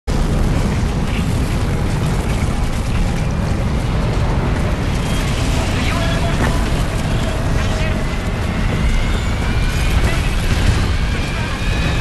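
A tornado roars with deep, rumbling wind.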